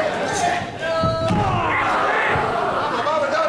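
A body thuds onto a wrestling ring mat.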